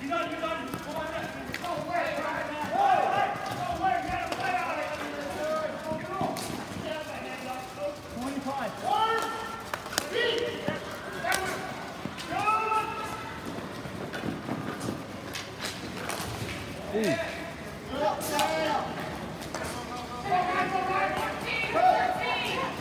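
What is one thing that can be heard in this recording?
A crowd of children and adults shout and talk loudly nearby.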